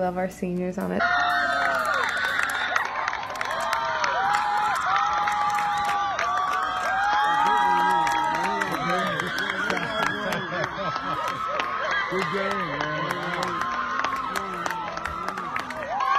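A group of young women cheer and chant loudly at a distance outdoors.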